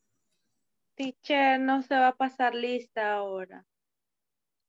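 A woman speaks over an online call.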